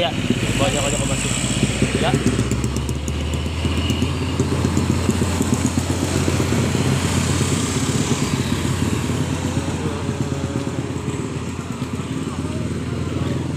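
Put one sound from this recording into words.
Traffic rumbles steadily nearby on a road outdoors.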